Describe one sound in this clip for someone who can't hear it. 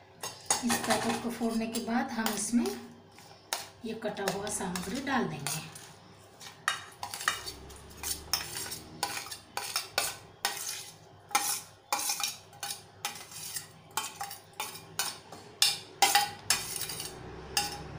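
A metal spoon scrapes and clinks against a steel plate.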